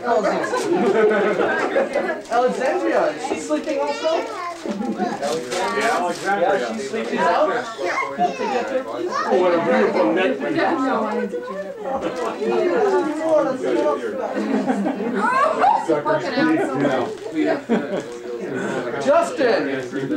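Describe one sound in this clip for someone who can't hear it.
A man talks warmly with small children up close.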